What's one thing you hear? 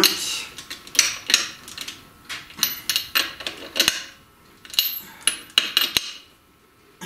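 Metal tools click and clink against a brake drum.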